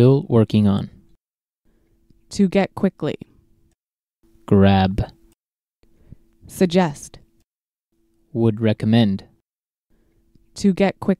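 A man reads out short words one at a time into a microphone, with pauses between them.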